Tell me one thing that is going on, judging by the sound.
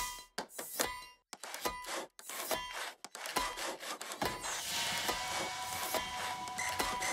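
Quirky game music plays with clanking, rhythmic metallic beats.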